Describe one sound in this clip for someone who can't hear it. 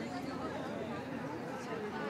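A young woman talks up close.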